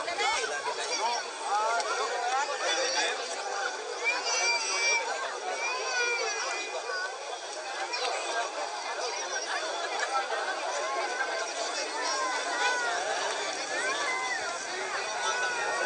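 A crowd of men and women chatter loudly outdoors.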